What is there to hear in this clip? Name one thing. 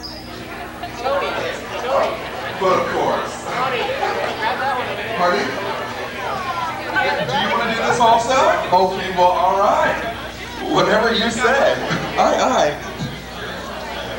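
A man speaks with animation over a loudspeaker in a large echoing hall.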